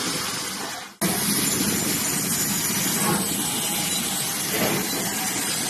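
A standing steam locomotive hisses steadily.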